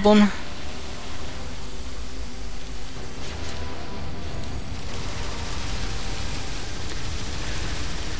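An energy weapon fires a buzzing beam.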